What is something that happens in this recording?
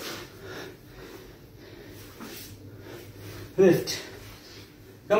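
Sneakers thump softly on an exercise mat.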